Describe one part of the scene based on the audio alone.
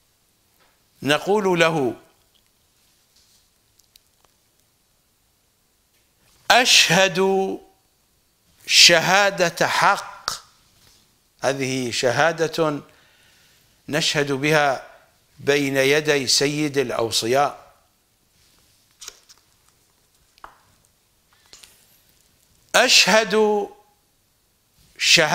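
An older man speaks calmly and expressively into a close microphone, in bursts with pauses.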